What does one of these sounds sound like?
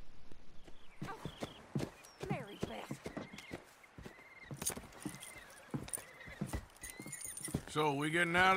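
A horse's hooves thud and crunch on snow.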